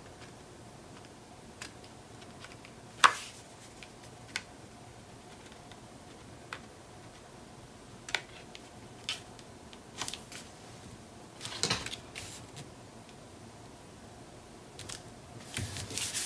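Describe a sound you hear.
Paper rustles and crinkles up close.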